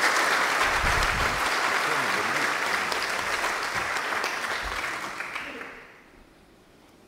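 An audience applauds in a large hall, and the applause fades away.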